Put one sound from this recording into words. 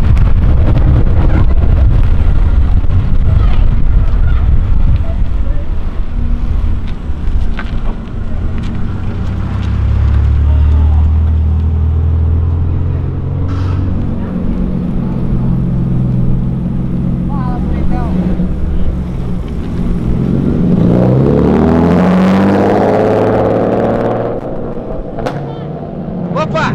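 Car engines rumble and rev loudly.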